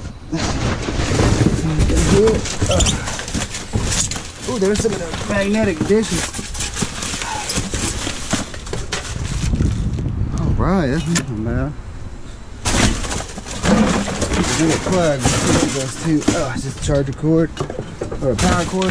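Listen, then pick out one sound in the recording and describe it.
Plastic bags and packaging rustle and crinkle.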